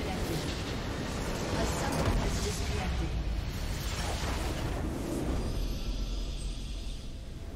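A loud rumbling explosion booms and crackles.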